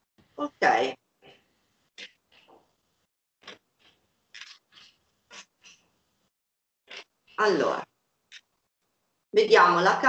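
Cards riffle and shuffle on a table.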